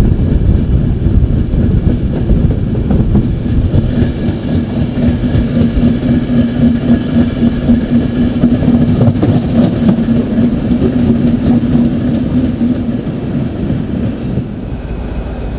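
A train rumbles and rattles past close by.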